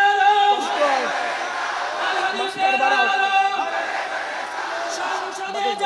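A man preaches with passion through a microphone, his voice echoing over loudspeakers.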